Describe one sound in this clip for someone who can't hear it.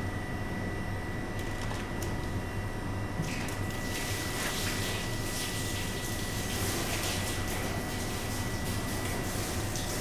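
A knife slices through raw fish on a board.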